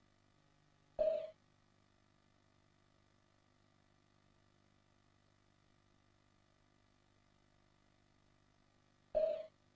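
A short electronic menu chime sounds twice.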